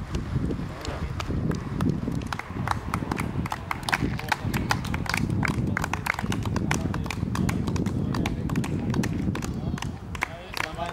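Several people clap their hands in scattered applause.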